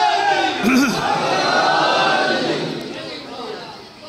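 A crowd of men chants together loudly.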